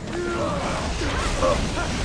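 Electric bolts crackle.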